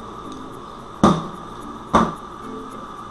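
A metal hand tool knocks twice as it is set down on a table.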